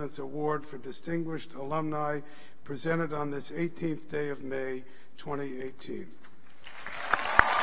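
An elderly man speaks calmly into a microphone, heard over loudspeakers in a large hall.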